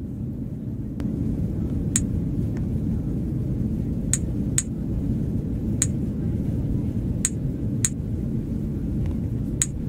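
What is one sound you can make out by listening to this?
Short, high clicks sound now and then.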